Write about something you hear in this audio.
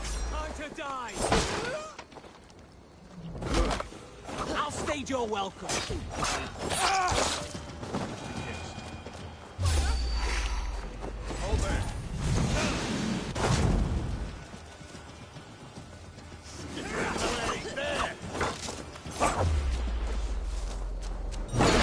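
Blades clash and thud in close combat.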